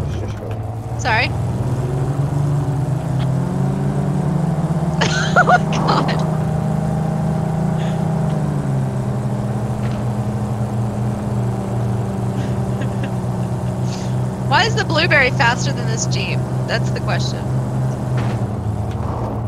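A woman talks with animation close to a headset microphone.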